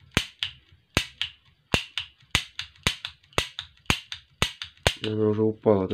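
A toy revolver's hammer clicks sharply again and again.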